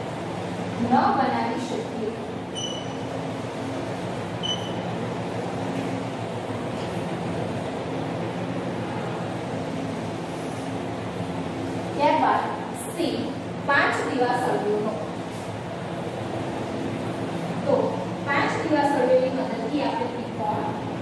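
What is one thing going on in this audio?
A woman speaks calmly and clearly.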